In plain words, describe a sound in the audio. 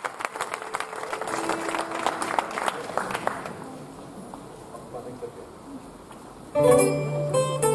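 Acoustic guitars start to play plucked notes.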